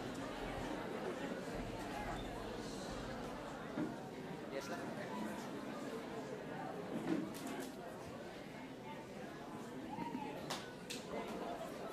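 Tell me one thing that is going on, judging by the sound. A crowd of young people chatter and call out loudly in an echoing hall.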